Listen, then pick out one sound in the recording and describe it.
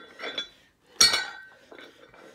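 A barbell with weights drops onto the ground with a heavy clank.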